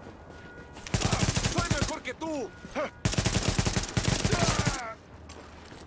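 Rapid automatic gunfire rattles loudly in bursts.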